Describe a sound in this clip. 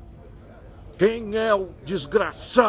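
A middle-aged man speaks sternly and angrily.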